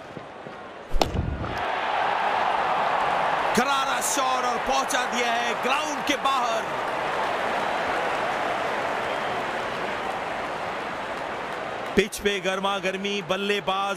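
A large stadium crowd cheers and roars loudly.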